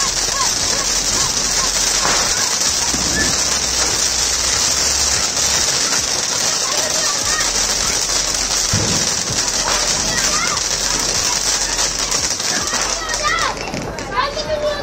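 A firework fountain hisses and sprays sparks steadily.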